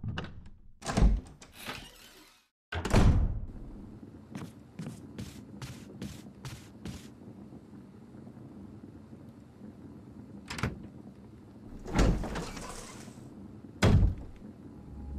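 A heavy wooden door slams shut.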